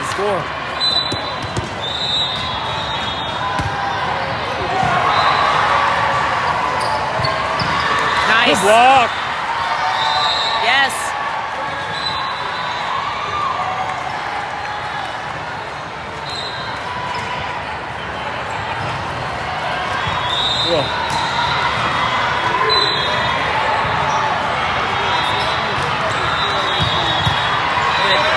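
A volleyball is struck with dull thumps.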